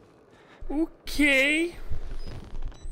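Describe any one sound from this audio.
A young man shouts in fright.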